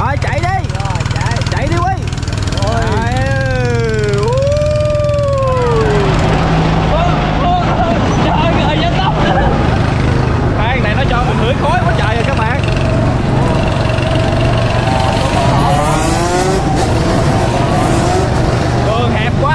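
Young men laugh and shout with excitement nearby.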